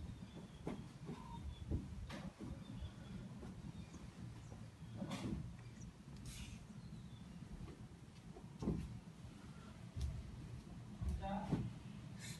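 A pillow thumps softly onto a mattress.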